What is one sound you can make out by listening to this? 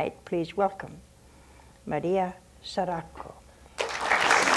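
An elderly woman speaks calmly and slowly into a microphone.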